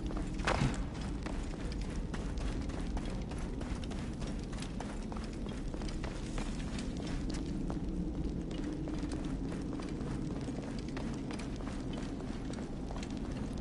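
Footsteps scuff over sand and stone.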